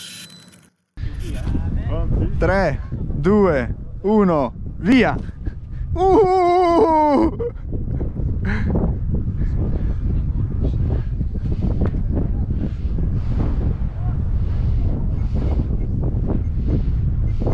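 Wind blows hard across a microphone outdoors.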